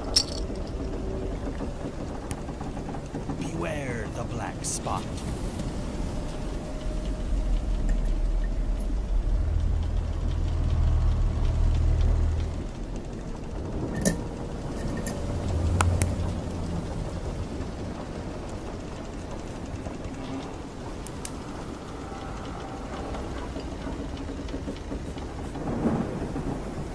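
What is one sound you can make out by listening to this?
A wooden ship creaks as it rocks on the water.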